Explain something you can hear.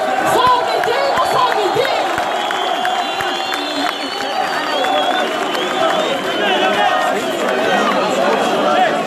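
A large crowd shouts and chants loudly outdoors.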